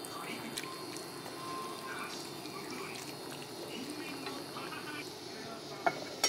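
Food simmers and bubbles softly in a pot.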